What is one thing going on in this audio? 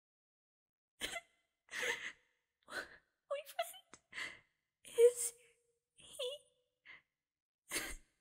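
A young woman asks something hesitantly, in short broken phrases.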